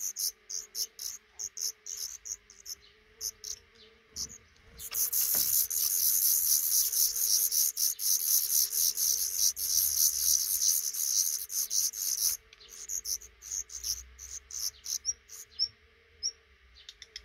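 Nestling birds chirp in a fast, shrill chorus, begging loudly.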